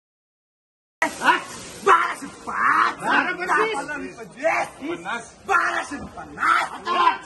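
Several men talk loudly over one another, close by.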